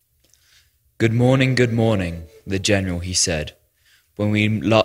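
A young woman reads out calmly into a microphone.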